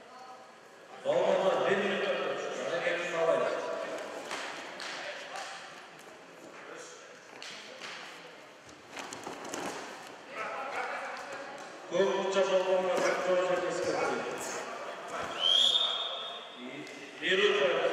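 Spectators shout and cheer loudly in an echoing hall.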